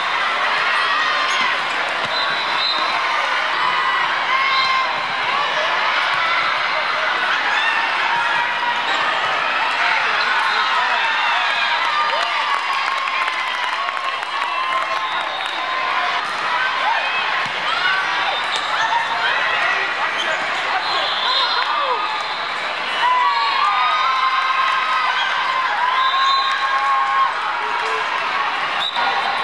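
Young girls shout to each other during play.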